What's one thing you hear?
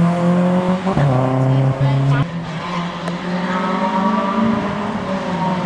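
A sports car's engine revs as it approaches.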